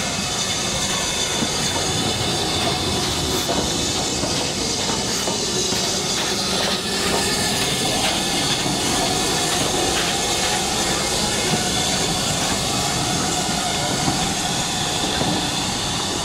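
Train wheels clank and squeal on the rails.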